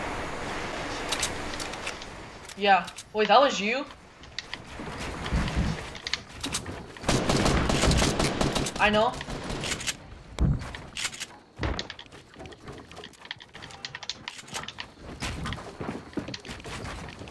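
Building pieces in a video game snap into place with quick clattering knocks.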